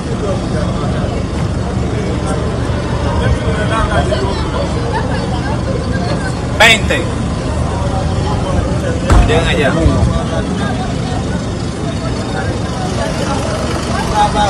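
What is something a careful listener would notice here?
Men and women talk and call out loudly nearby.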